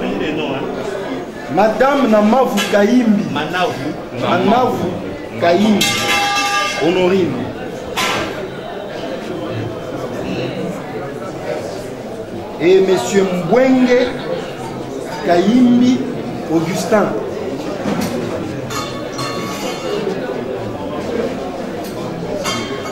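A crowd murmurs in the background of an echoing room.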